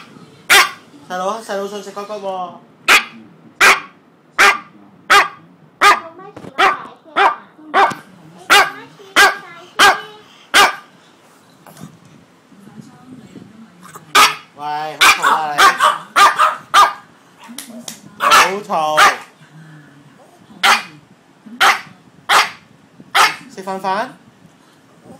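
A dog whines and howls in a high voice.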